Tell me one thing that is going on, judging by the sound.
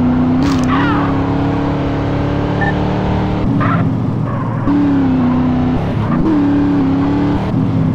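A car engine revs loudly and steadily, dropping briefly between gear changes.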